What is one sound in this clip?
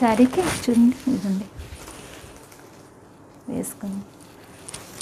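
A woman speaks briefly and calmly close by.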